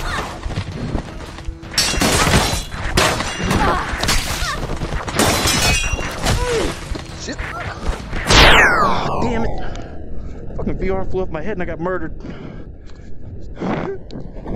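Weapons clash and thud in a rapid melee fight.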